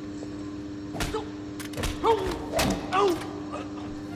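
A heavy blow thuds against a man.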